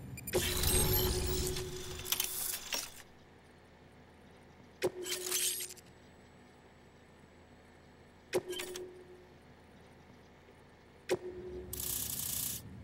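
Electronic interface chimes ring out, each with a soft swoosh.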